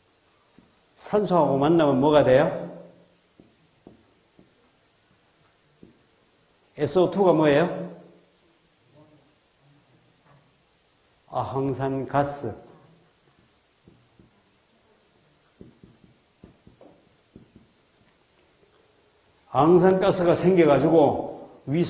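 A man speaks through a microphone in short, lively bursts with long pauses between them.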